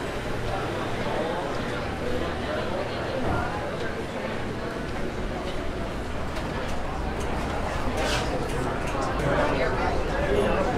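A crowd murmurs and chatters indoors.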